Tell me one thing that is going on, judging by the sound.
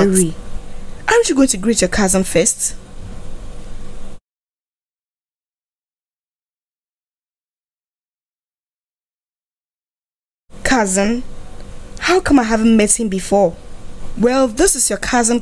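An older woman speaks warmly.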